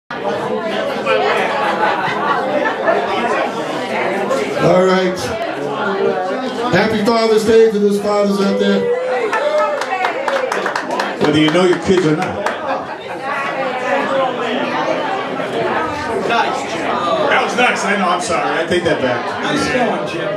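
A rock band plays electric guitars loudly.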